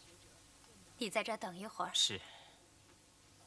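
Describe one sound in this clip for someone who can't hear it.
A young woman speaks softly nearby.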